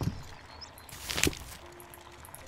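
A knife chops through a piece of fruit.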